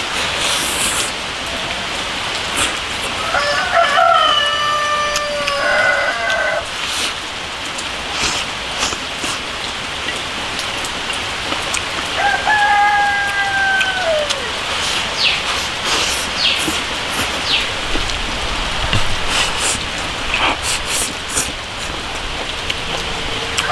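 A man chews food noisily.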